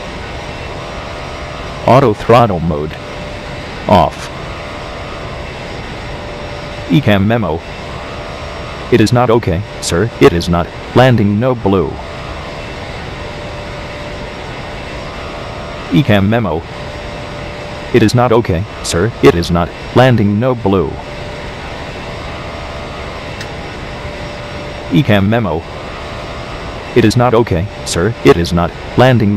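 A jet engine drones steadily.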